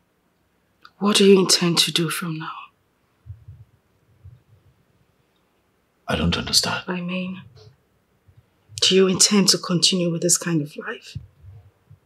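A woman speaks tearfully, close by.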